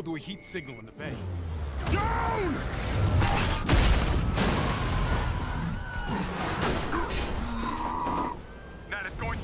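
Heavy crashes and deep rumbling roar nearby.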